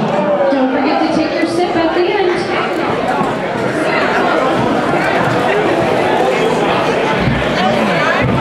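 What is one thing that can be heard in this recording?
A large crowd of men and women chatters loudly in a big echoing hall.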